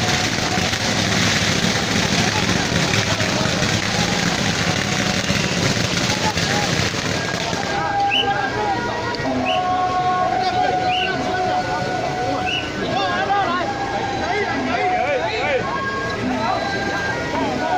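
A large crowd cheers and chatters loudly outdoors.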